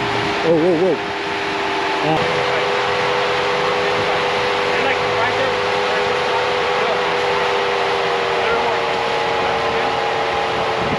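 An off-road vehicle's engine hums steadily as it crawls slowly over rocks.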